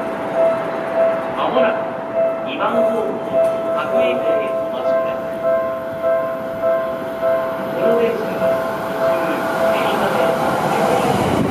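A railway crossing bell rings in a steady, even rhythm.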